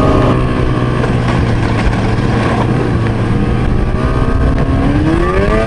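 A snowmobile engine hums steadily up close and rises in pitch as it speeds up.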